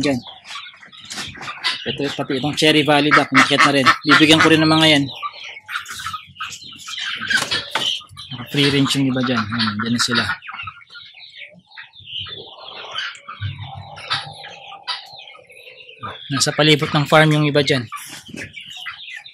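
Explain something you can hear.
Hens cluck softly nearby.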